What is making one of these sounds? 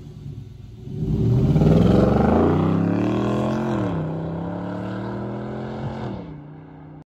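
A truck engine revs loudly and roars as the truck accelerates away, then fades.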